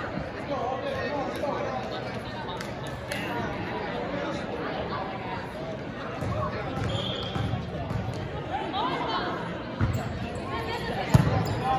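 Young women chatter and call out in a large echoing gym.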